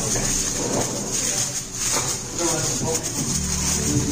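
Aluminium foil crinkles as it is pressed around a dish.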